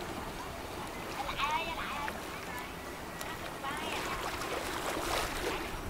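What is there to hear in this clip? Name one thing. Water washes along the bow of a passing ship.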